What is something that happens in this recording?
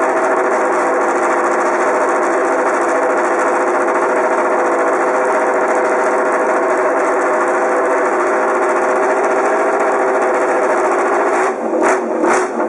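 A racing motorcycle engine runs loudly at a steady, high idle.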